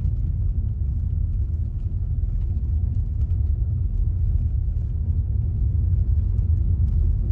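Tyres crunch and rumble over a dirt road.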